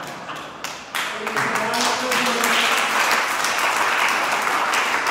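A group of people applaud and clap their hands.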